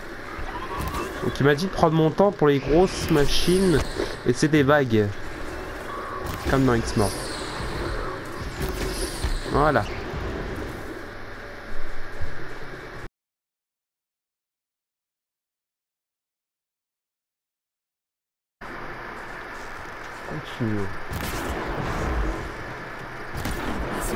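A bowstring twangs as arrows fly.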